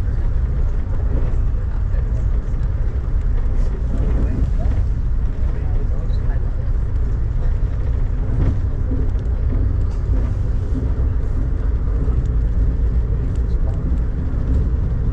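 A vehicle rumbles steadily as it travels along.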